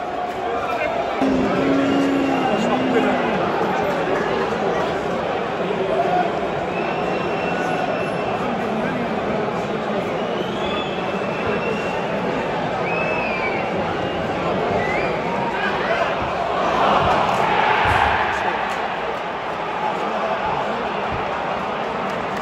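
A large football stadium crowd chatters and murmurs outdoors.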